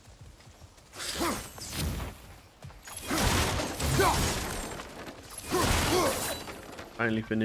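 Loud whooshing blows and crashing impacts burst again and again.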